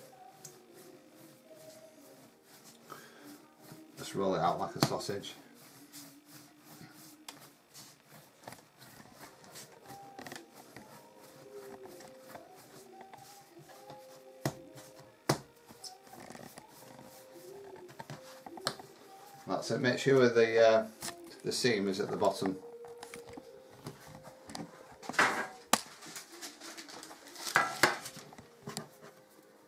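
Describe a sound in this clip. Hands knead and slap soft dough against a hard counter with dull thumps.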